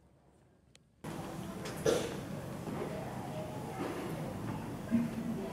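Young children murmur and chatter in an echoing hall.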